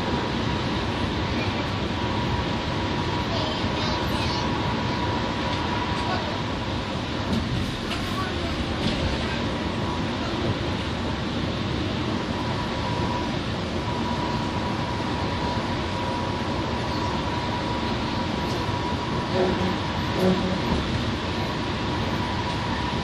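A bus engine hums steadily from inside the cabin.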